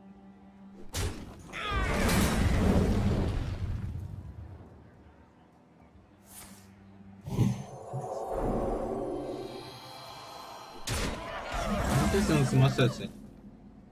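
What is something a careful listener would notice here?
Magical spell effects whoosh, crackle and chime.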